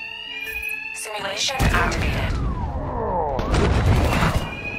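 Heavy blows land with thuds and whooshes in a fight.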